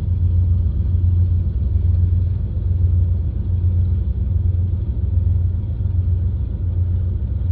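A freight train rumbles steadily past nearby.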